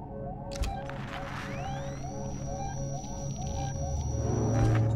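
A handheld motion tracker beeps.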